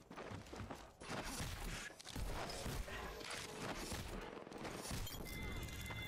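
Gunfire from a game rattles in quick bursts.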